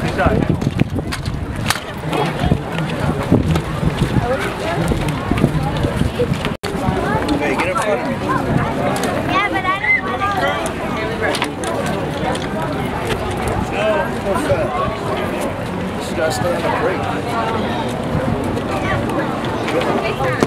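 Scooter wheels roll and rattle on concrete.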